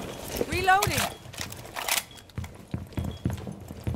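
A rifle magazine clicks into place during a reload.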